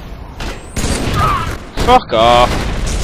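Rapid gunfire rings out close by.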